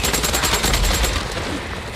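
A fire blazes and roars.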